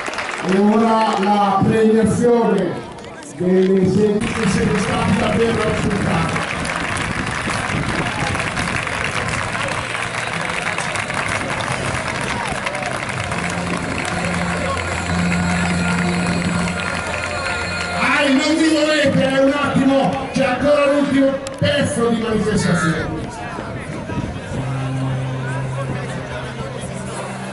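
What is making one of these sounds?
A large crowd of children and adults chatters and cheers outdoors.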